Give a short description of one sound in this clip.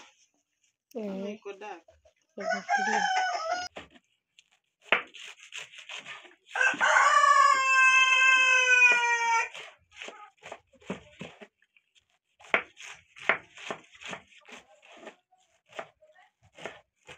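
A knife chops leafy greens on a wooden board with quick, sharp taps.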